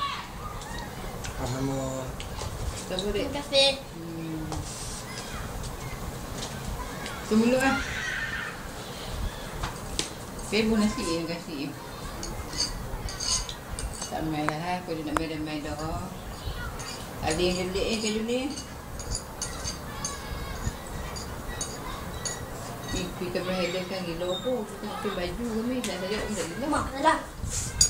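Several men and a woman talk casually nearby.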